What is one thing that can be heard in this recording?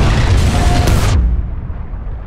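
A loud explosion booms and rumbles, then cuts off suddenly.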